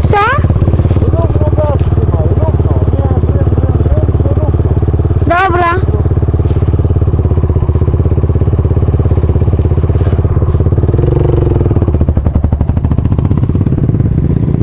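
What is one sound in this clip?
A quad bike engine idles and rumbles loudly close by.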